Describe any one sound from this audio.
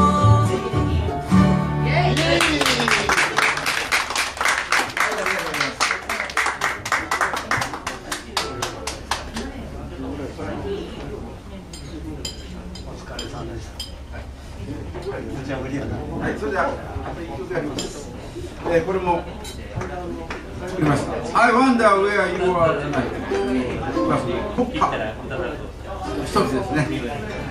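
A small acoustic band plays a lively folk tune in a room.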